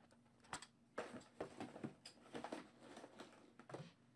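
A stack of trading cards riffles and clicks as it is handled.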